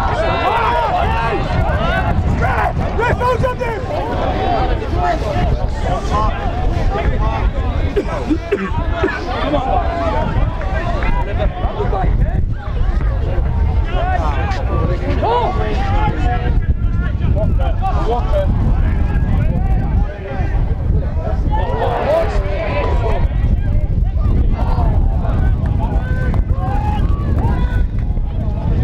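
A crowd of spectators murmurs outdoors.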